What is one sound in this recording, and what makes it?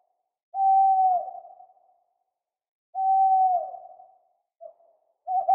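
An owl hoots in long, steady calls that drop at the end, again and again.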